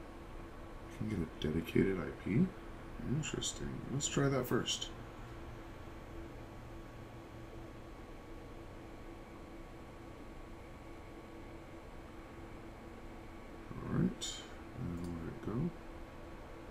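A man speaks calmly and close to a microphone.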